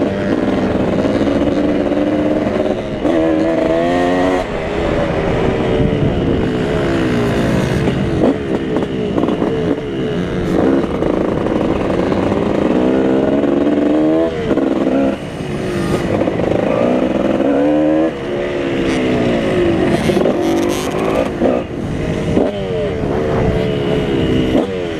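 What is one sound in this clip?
Wind buffets loudly against the rider outdoors.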